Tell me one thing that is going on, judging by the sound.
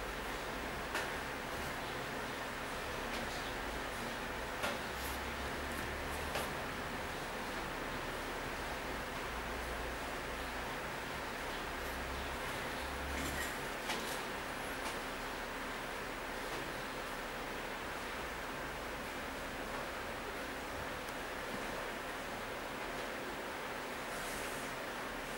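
Hands handle a sneaker, with soft rubbing and tapping noises.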